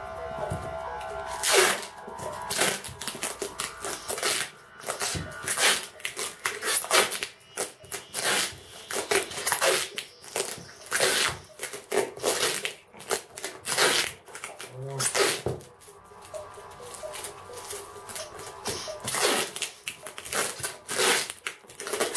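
A box thumps and scrapes on a table as it is turned.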